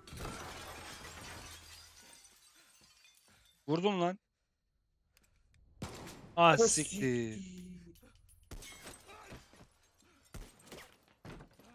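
An explosion bursts with debris rattling down.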